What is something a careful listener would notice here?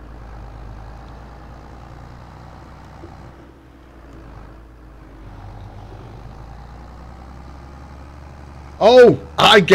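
A tractor engine rumbles steadily while driving.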